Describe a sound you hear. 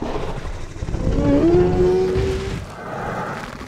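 A large dinosaur lets out a long, deep bellowing roar.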